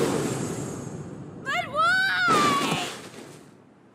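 A fighter crashes to the ground with a thump.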